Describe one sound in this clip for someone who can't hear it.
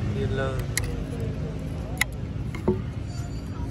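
Small plastic speakers knock and clack as they are handled.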